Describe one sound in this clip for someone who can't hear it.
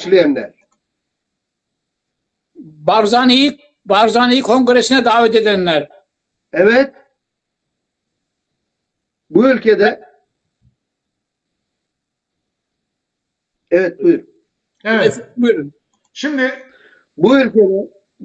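A middle-aged man speaks with animation over an online call, in bursts with pauses.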